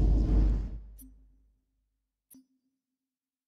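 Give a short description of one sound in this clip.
A soft electronic blip sounds twice.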